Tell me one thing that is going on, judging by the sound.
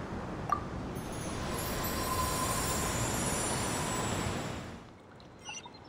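A swirling wind whooshes steadily and then fades away.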